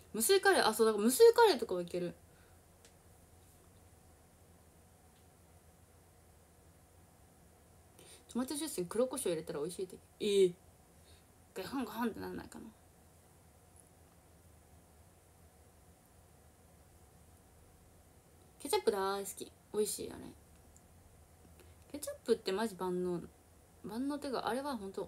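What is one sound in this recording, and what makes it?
A young woman speaks casually in short bursts, close to the microphone.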